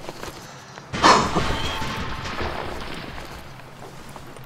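Boots splash through shallow water.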